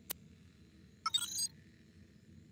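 A short electronic chime sounds.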